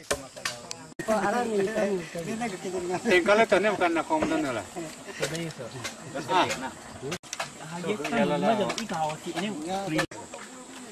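Young men talk and laugh close by.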